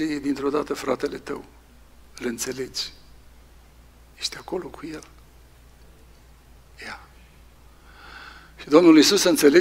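A man speaks calmly into a microphone, with pauses, in a reverberant hall.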